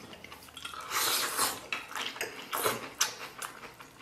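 A man slurps noodles.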